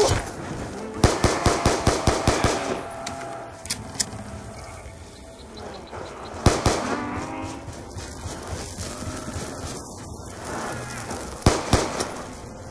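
A gun fires rapid shots in quick bursts.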